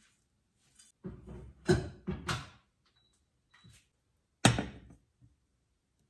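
A metal pot clanks against a stovetop.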